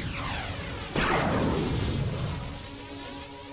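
A heavy blast booms and crackles, then rings away.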